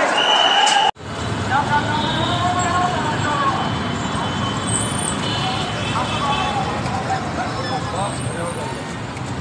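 Motorcycle engines rumble and idle nearby.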